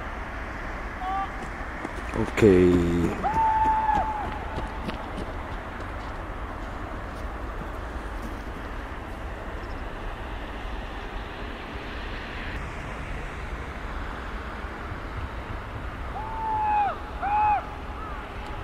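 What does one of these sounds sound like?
A bird cries out several times high overhead.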